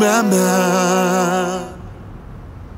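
A man sings loudly, holding a long note with vibrato.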